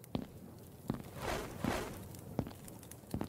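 A fire roars briefly up close.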